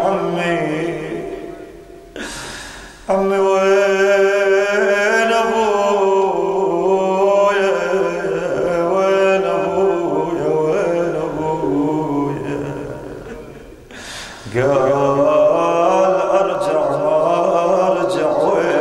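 A man chants a mournful lament into microphones, with reverb.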